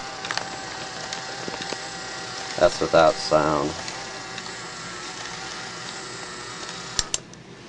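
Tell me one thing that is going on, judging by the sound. A small motor hums steadily inside a mechanism.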